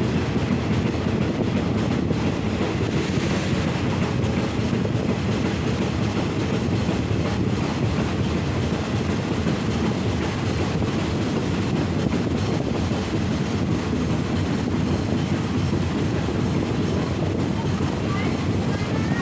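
Wheels clatter rhythmically over rail joints.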